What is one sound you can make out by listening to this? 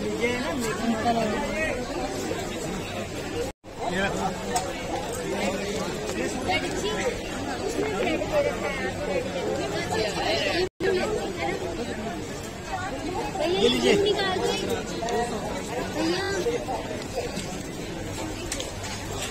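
Many people chatter and call out close by.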